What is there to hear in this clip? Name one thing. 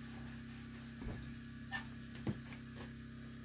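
A metal stove door clanks as it is lifted off.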